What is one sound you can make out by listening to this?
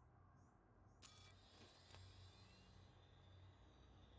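An electronic interface chimes and swishes as a menu opens.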